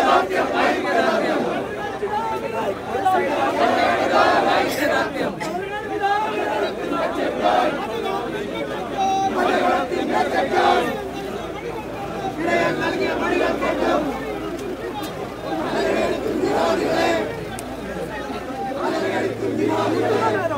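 A crowd of men shouts and talks loudly outdoors, close by.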